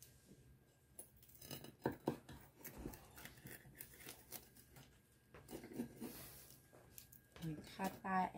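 A pizza cutter crunches through a baked crust.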